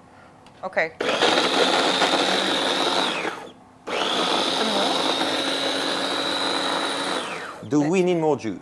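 A blender whirs loudly in two bursts, with a short pause between them.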